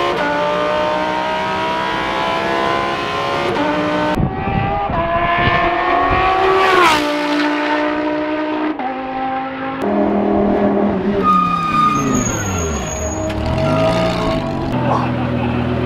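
A race car engine roars and revs up and down loudly.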